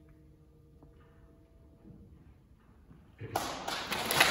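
A harp plays softly in a large hall.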